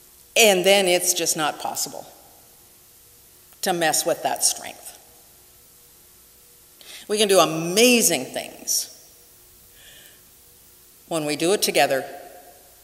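A middle-aged woman speaks calmly and deliberately into a microphone, in short phrases with pauses.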